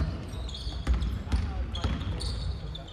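A basketball bounces with dull thuds in a large echoing hall.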